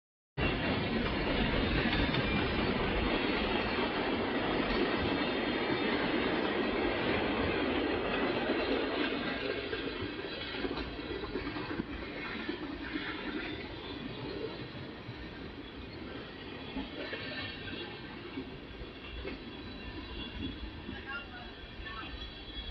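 A long freight train rumbles and clatters past in the distance, outdoors.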